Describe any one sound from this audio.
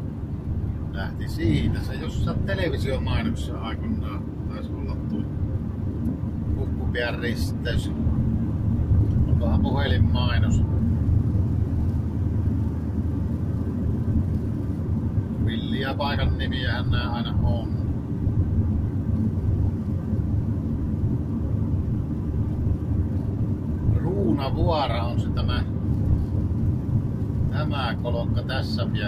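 A car engine hums and its tyres roll steadily on a wet road, heard from inside the car.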